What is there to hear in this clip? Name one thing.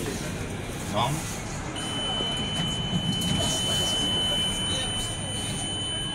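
Elevator doors slide open with a soft rumble.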